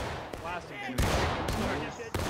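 A rifle fires nearby with a loud crack.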